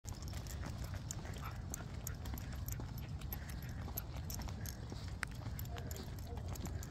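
A dog's claws tick on pavement.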